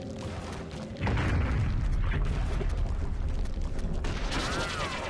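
A low rumbling whoosh bursts out as a creature lunges.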